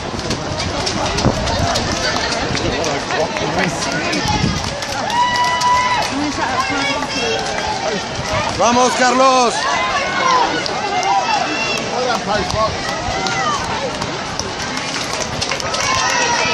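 Many runners' footsteps patter on the road.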